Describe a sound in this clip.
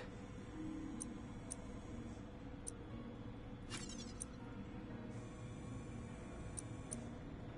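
Short electronic interface blips sound now and then.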